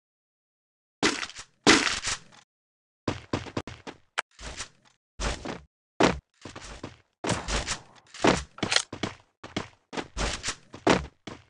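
Quick footsteps patter on the ground.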